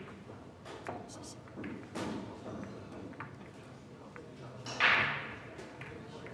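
Billiard balls clack together as they are gathered on the table.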